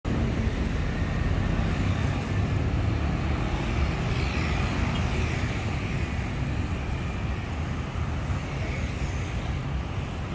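Motorbikes and cars drive past on a busy road.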